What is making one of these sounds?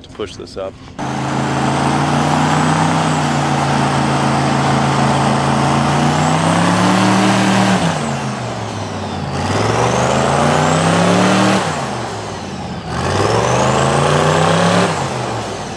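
An airboat engine roars loudly, rising and falling as it revs.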